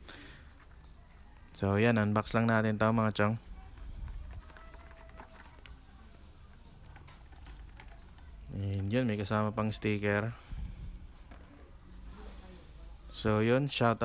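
Plastic packaging crinkles in a hand.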